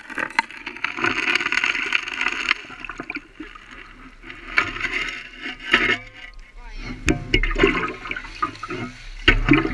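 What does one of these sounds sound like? Water splashes and sloshes around a shovel.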